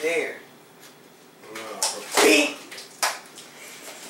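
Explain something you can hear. A pie splats into a man's face.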